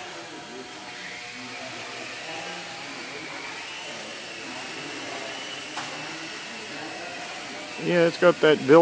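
A small toy drone buzzes with a thin, high whine as it hovers.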